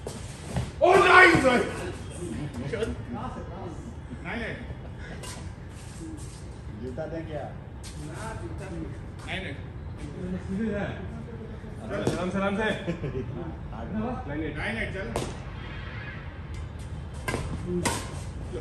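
A shuttlecock is struck by badminton rackets with light pops.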